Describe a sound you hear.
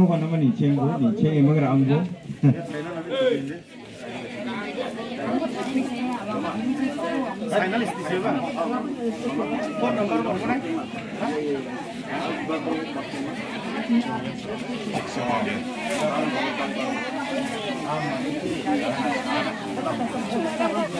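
A crowd of women and men chatter all around, close by.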